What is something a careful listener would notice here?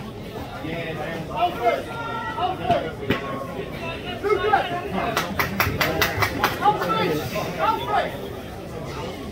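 Young men shout and cheer outdoors, close by.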